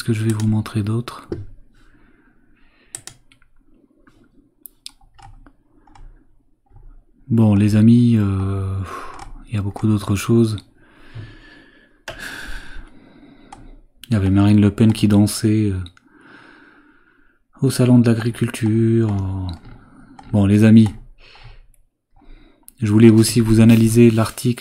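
A man talks calmly and closely into a microphone, with pauses.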